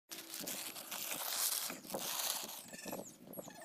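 Paper crinkles and rustles between two hands.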